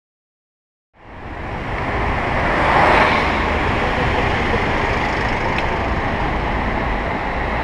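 Car engines idle and hum in slow street traffic.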